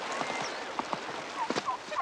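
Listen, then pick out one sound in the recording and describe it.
A horse gallops across hard ground.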